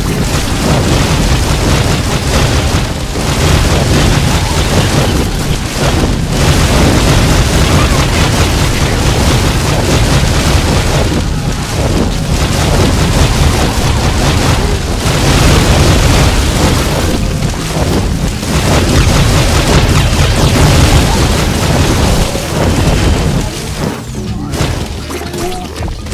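Fiery explosions burst and roar again and again.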